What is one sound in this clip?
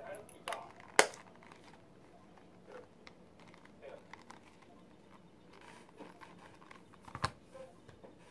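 A metal snap clicks shut sharply.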